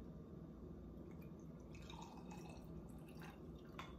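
Liquid pours from a glass bottle into a glass.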